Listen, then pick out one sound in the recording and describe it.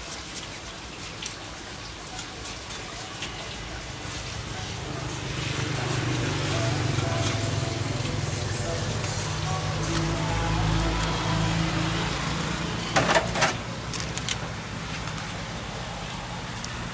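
A cleaver scrapes scales off a fish.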